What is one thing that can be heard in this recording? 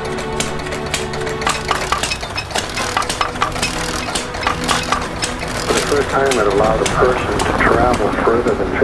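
An old car engine idles with a steady, low putter.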